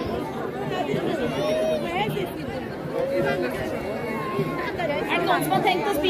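A large outdoor crowd chatters with many overlapping voices.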